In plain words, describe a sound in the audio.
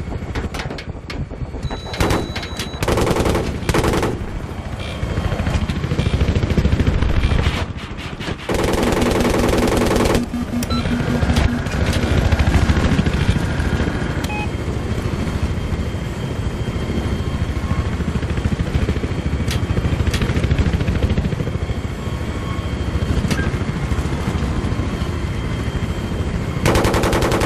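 A helicopter engine roars steadily.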